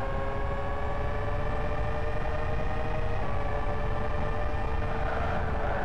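A racing car engine whines steadily at high revs, slowly dropping in pitch.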